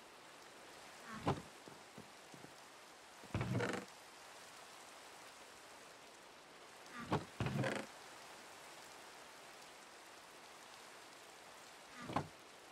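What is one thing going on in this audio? A wooden chest creaks open and thuds shut.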